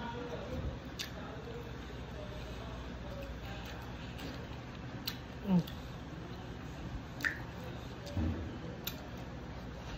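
Plastic crinkles and clicks as a woman handles food in a container.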